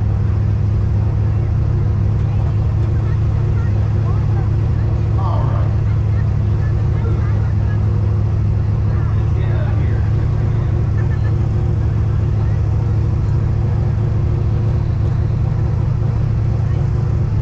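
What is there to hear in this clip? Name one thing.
A crowd murmurs faintly in the distance.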